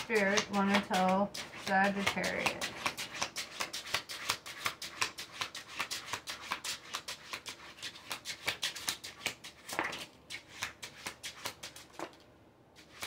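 Playing cards riffle and flap as they are shuffled.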